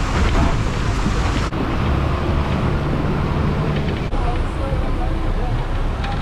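A bus engine rumbles loudly as it crawls over a rough, rocky road.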